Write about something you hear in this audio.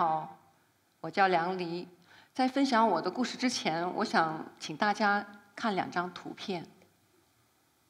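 A woman speaks calmly through a microphone in a large hall.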